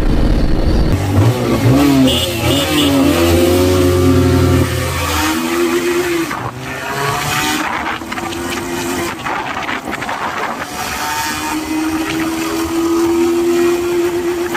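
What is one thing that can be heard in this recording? A second motorcycle engine revs higher and higher as it speeds up.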